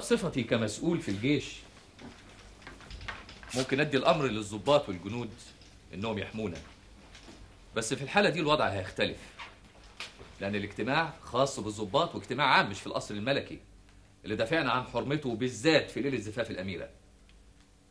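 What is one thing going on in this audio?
Men talk with one another, speaking firmly and with animation.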